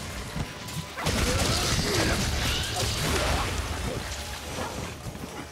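Bursts of impact and explosion sounds boom.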